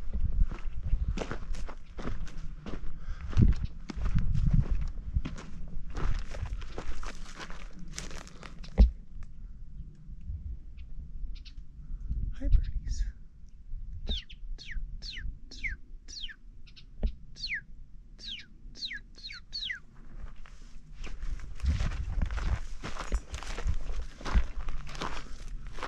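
Footsteps crunch and scuff on dry, gravelly ground outdoors.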